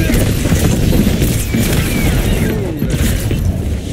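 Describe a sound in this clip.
A burst of game fire ends in a loud blast.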